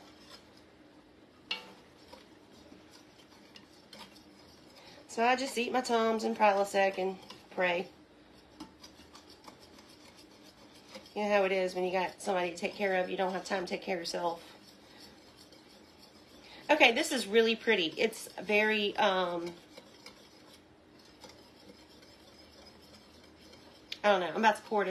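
A whisk scrapes and taps against a metal pot.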